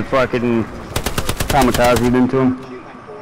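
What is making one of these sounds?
A submachine gun fires a rapid burst.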